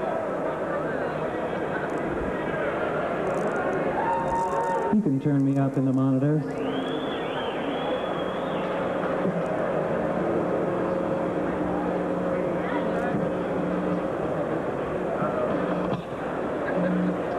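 An acoustic guitar is strummed and picked on a live stage.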